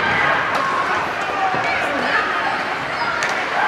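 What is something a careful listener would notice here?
Young players shout in celebration.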